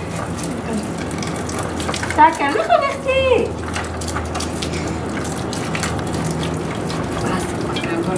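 Water trickles and splashes from a hose.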